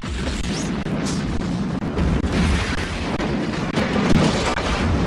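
A loud explosion booms and debris crackles.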